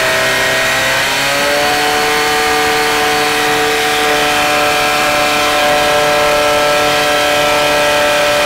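Water jets spray and hiss from hoses.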